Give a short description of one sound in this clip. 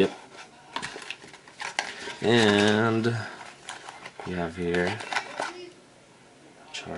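Cardboard scrapes and taps as a box is handled and opened.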